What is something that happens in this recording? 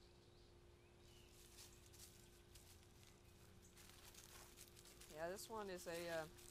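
A dog's paws rustle through dry leaves.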